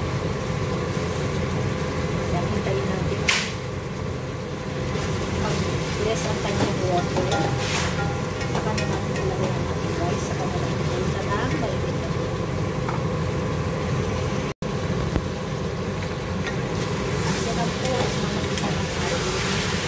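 A gas flame roars steadily.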